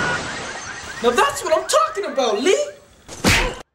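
A young man shouts with excitement.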